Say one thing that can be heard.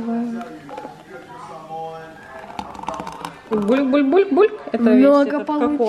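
Milk pours into a glass.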